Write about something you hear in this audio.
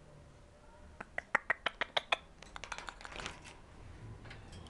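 A parrot clicks rapidly.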